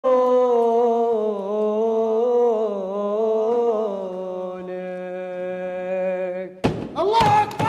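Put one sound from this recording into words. A group of men sings a long, drawn-out chant together, close by.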